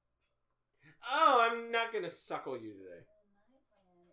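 A young man makes a long, drawn-out vocal sound close to the microphone.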